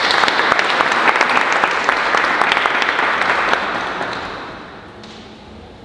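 An audience applauds in a large echoing hall and the clapping fades out.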